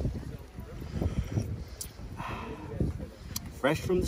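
A man slurps an oyster from its shell.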